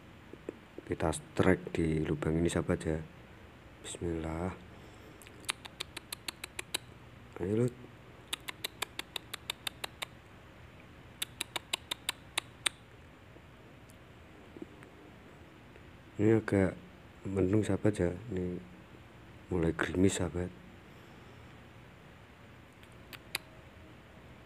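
Nestling birds peep and chirp softly close by.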